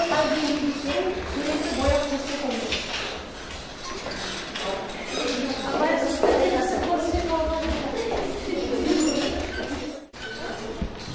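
A woman speaks calmly to a class in a room with some echo.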